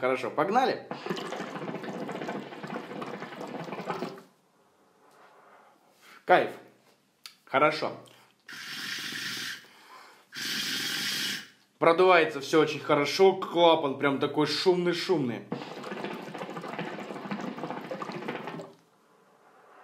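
Water bubbles steadily in a hookah as a man draws on it.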